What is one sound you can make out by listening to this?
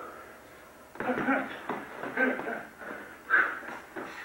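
A man grunts and breathes hard nearby.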